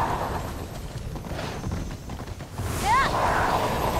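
Hooves thud and crunch through snow at a steady gallop.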